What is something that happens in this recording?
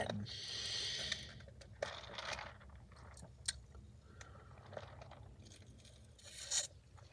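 A person slurps a drink loudly through a straw.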